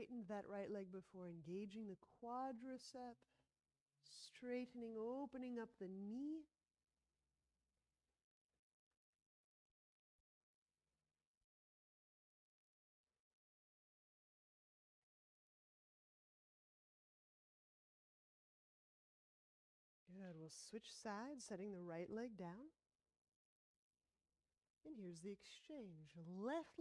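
A woman speaks calmly and clearly, close by, giving instructions.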